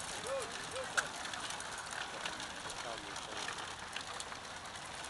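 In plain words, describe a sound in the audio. Bicycle gears and chains click and whir.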